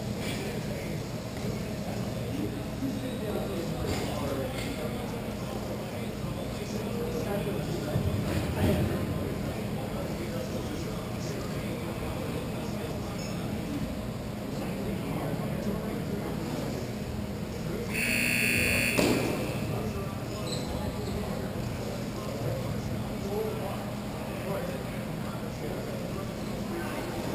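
Roller skate wheels roll and scrape on a hard floor in a large echoing hall.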